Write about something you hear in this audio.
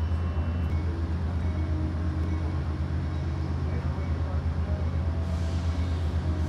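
A train engine idles with a steady low rumble.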